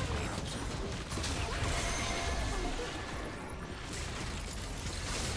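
Game spell effects whoosh and crackle.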